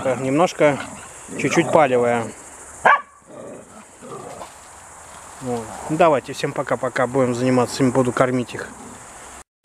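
Dogs yelp and whine loudly close by.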